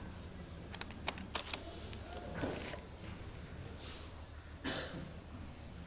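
Paper rustles and clicks softly close by.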